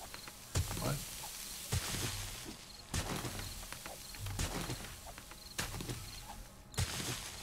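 A pickaxe strikes rock with sharp, regular blows.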